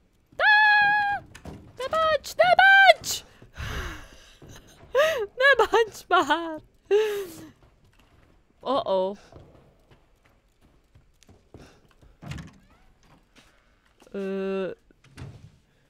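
A young woman talks and sings playfully into a close microphone.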